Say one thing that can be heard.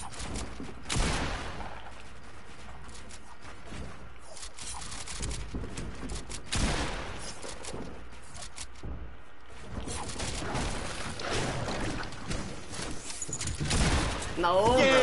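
Building pieces clack and thud into place in quick bursts.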